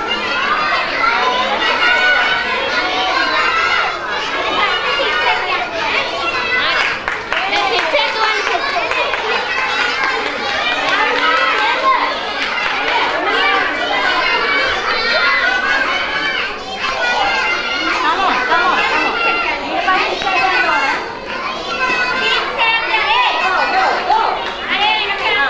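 Many young children chatter and call out in a large echoing hall.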